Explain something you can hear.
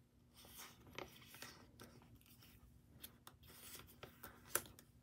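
Cards tap and click against plastic.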